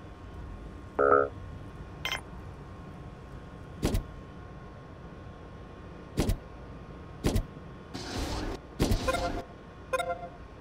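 Short electronic clicks and chimes sound from a game.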